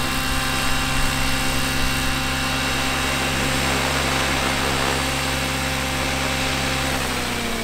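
Model helicopter rotor blades whir and chop the air.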